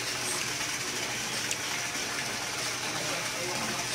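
A fountain splashes into a pool.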